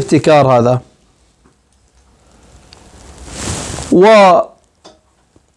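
A middle-aged man speaks calmly and closely into a microphone, pausing between phrases.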